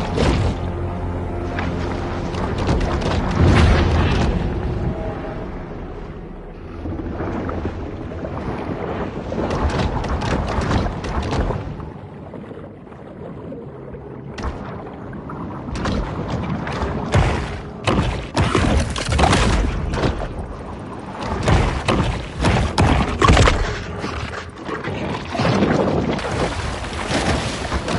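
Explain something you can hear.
Water rushes and swirls as a large fish swims underwater.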